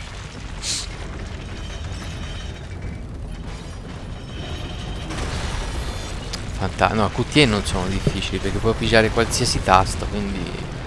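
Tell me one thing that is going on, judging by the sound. A heavy metal mechanism rumbles and grinds.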